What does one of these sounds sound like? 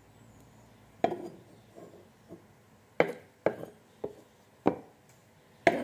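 A knife taps against a wooden cutting board.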